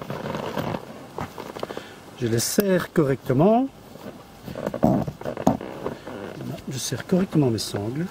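Fabric straps rustle and scrape as hands adjust them.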